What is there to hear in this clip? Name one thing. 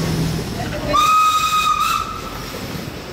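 A steam whistle blows loudly for about a second.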